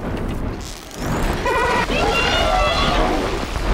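A huge mechanical creature screeches loudly with metallic cries.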